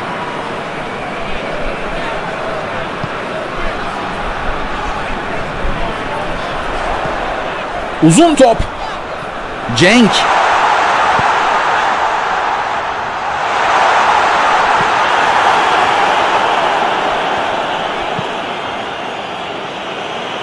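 A large crowd roars steadily in a stadium, swelling louder for a while.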